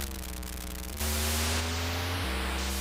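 A harsh electronic hiss sounds as a car skids sideways.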